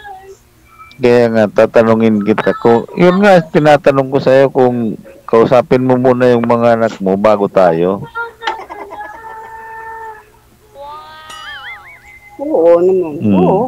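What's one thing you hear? A middle-aged man sings loudly into a microphone, heard through an online call.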